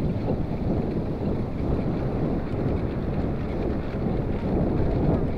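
Bicycle tyres rumble steadily over a paved path.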